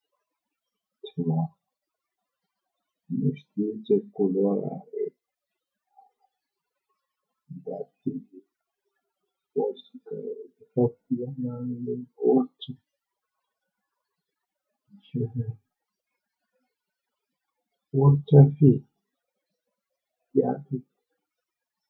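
A middle-aged man speaks with animation in bursts, close to a microphone.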